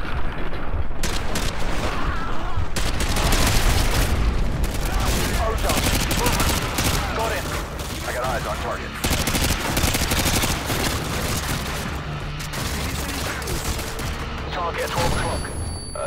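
Rapid gunfire rattles and cracks.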